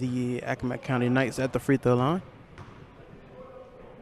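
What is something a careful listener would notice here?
A basketball bounces on a wooden gym floor in an echoing hall.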